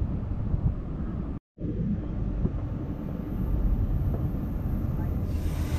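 Traffic rumbles steadily along a road below.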